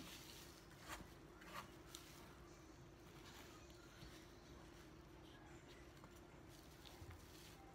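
A knife slices through soft melon.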